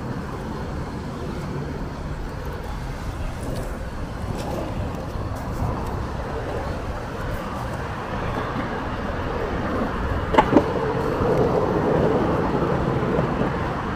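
Skateboard wheels roll and rumble on pavement.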